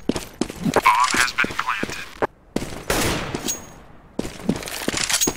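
Footsteps thud quickly on hard stone floor.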